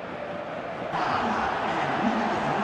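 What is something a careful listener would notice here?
A stadium crowd bursts into loud cheering.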